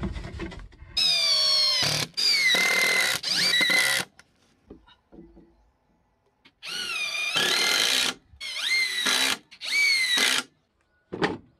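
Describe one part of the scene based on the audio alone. A cordless drill whirs in short bursts, driving screws into wood.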